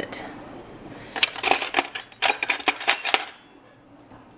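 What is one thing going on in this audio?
Metal cutlery rattles and clinks in a drawer.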